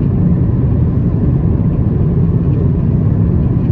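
A finger taps lightly on a touchscreen.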